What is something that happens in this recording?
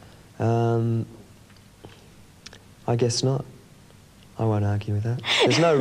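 A young man speaks calmly in short phrases, close to a microphone.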